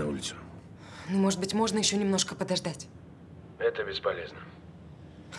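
A young woman speaks softly and anxiously on a phone, close by.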